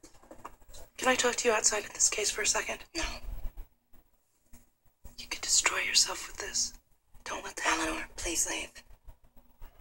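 A woman speaks earnestly, heard through a small loudspeaker.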